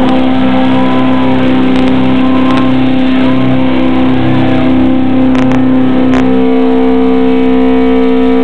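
A loud distorted electric guitar plays heavy riffs through an amplifier.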